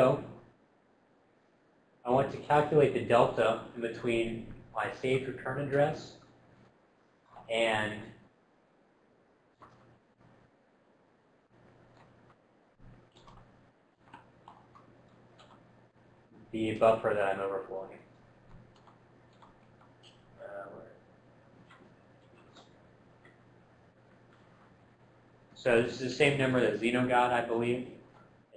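A man lectures through a microphone, speaking in bursts with pauses.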